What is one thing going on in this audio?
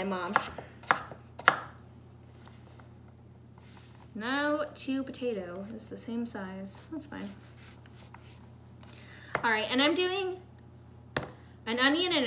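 A knife chops sharply on a wooden board.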